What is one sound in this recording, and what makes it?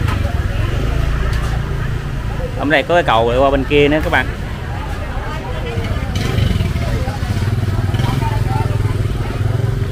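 Motorbike engines idle and rumble nearby.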